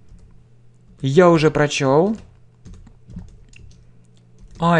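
A man speaks clearly into a nearby microphone.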